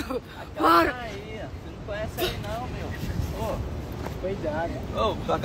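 A young man talks casually close to a phone microphone.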